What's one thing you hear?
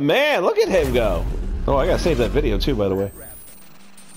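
A hover bike engine whines, rising and falling in pitch.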